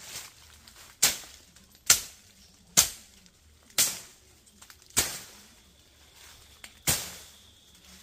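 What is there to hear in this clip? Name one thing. A machete chops through plants with sharp whacks.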